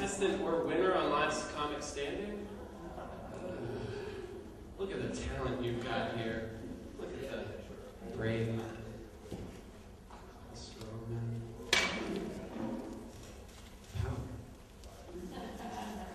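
A young man talks with animation into a microphone, heard through a loudspeaker in a reverberant room.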